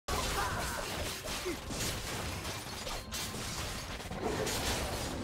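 Magic spells whoosh and crackle in a fast game battle.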